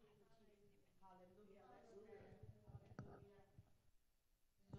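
A young woman speaks softly into a microphone.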